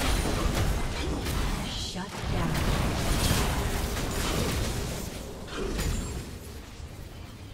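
Spell effects crackle and burst in a game battle.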